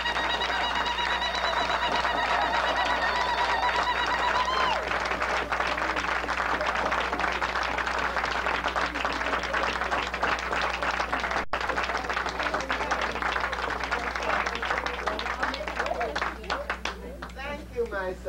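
A crowd cheers and sings loudly.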